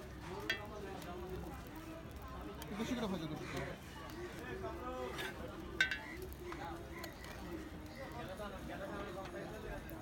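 Food sizzles softly on a hot griddle.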